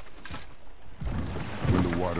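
Water laps against a rowing boat.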